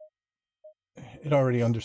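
A man speaks into a microphone with animation.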